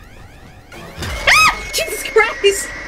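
A young woman cries out into a headset microphone.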